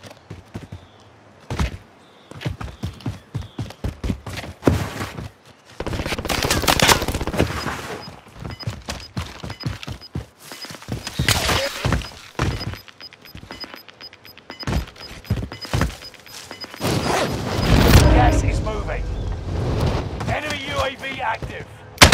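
Footsteps rustle quickly through grass and brush.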